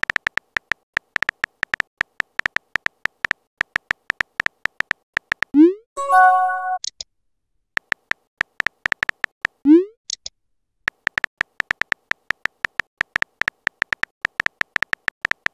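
Keyboard taps click rapidly and steadily.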